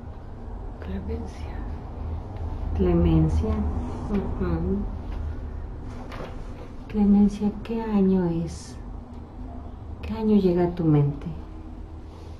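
A middle-aged woman speaks calmly and quietly close by.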